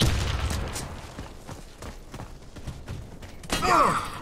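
A sniper rifle fires with a loud crack.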